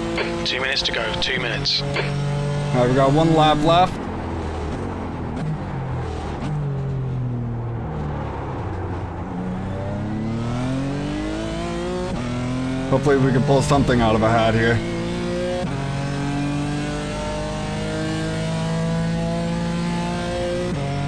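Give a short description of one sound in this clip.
A racing car engine roars and revs, rising and falling as it shifts gears.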